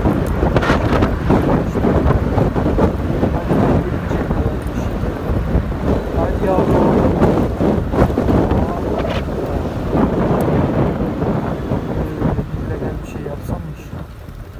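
Wind rushes loudly past a moving motorcycle, then dies down.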